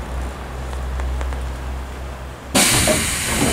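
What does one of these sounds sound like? A train rumbles and hums as it rolls along.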